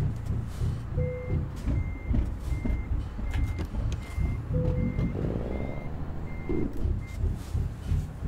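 A turn signal ticks evenly.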